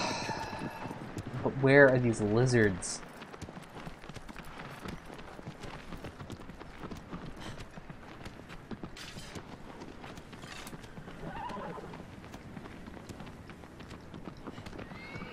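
A horse's hooves clop steadily on stony ground.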